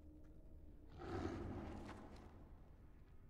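A large beast growls and snarls loudly.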